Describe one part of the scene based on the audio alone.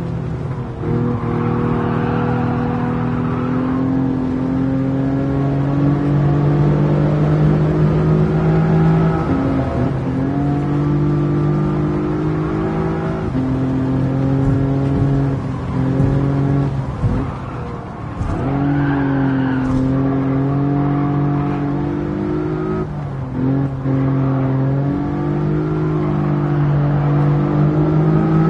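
A racing car engine revs hard, rising in pitch and dropping at each gear change.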